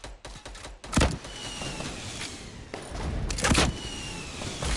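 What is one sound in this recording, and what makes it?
A rocket launcher fires with a loud boom.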